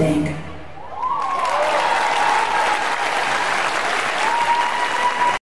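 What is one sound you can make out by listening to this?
A large audience cheers and applauds loudly.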